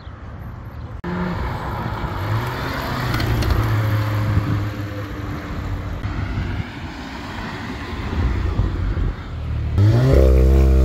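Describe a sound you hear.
Traffic rumbles along a city street outdoors.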